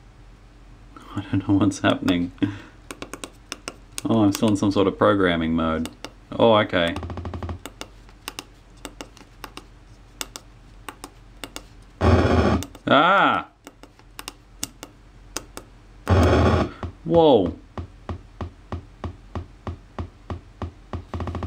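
A small electronic synthesizer bleeps and warbles, its tone sweeping up and down.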